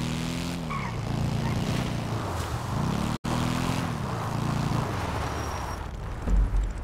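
A motorcycle engine revs and drones.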